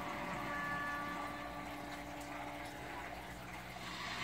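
A television plays in the room.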